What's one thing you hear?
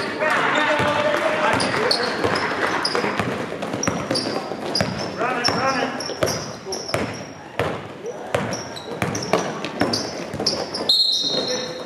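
A basketball bounces repeatedly on the court.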